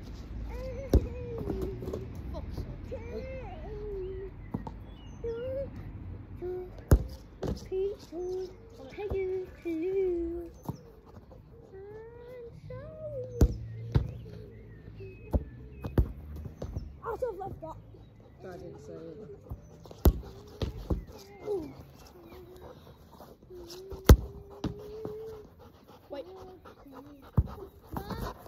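A football is kicked with sharp thuds, again and again.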